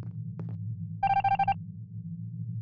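A bright electronic chime rings out briefly.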